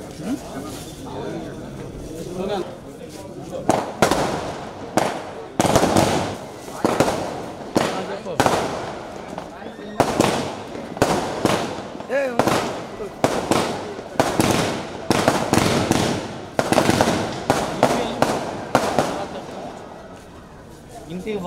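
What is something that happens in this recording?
Several men talk quietly nearby.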